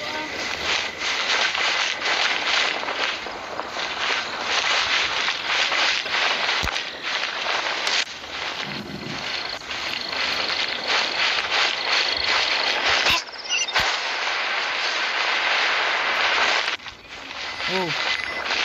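Quick footsteps run over stone.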